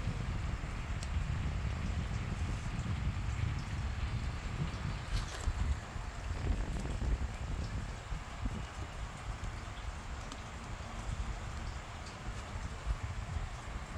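A small blade scrapes and picks at dry soil on plant roots.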